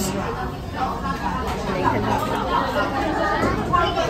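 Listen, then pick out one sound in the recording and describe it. Cutlery clinks against a plate.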